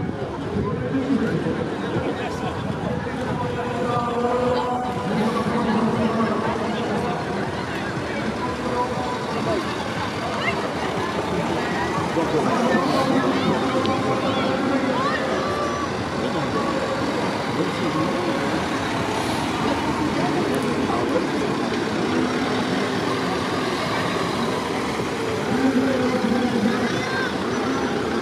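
A roadside crowd of men, women and children chatters and calls out.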